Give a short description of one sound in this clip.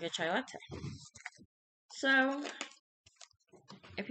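A plastic package crinkles in hands.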